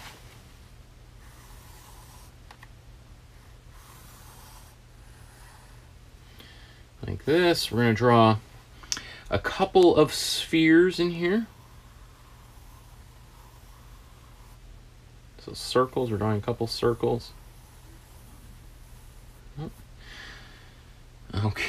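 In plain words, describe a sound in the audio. A pen scratches on paper.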